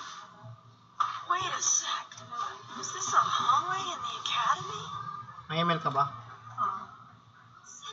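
A young woman talks through a webcam microphone.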